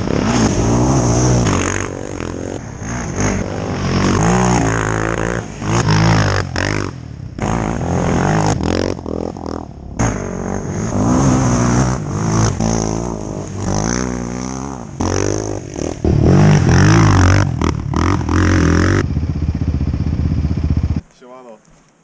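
Quad bike engines rev loudly and roar past.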